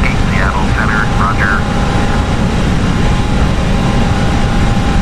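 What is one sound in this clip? A jet airliner's engines drone with a steady, deep roar from inside the cockpit.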